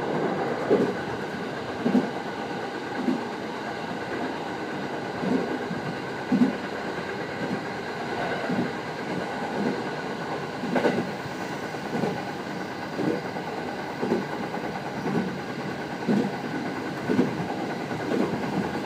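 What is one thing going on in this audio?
A train rumbles steadily along the track.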